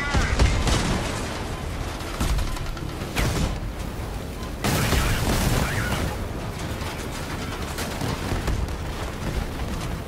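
Explosions boom and crackle with fire.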